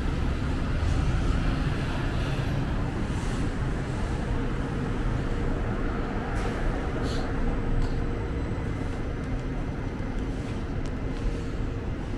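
A car engine idles close by.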